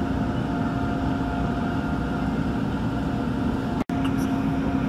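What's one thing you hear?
An electric commuter train hums while standing at a platform.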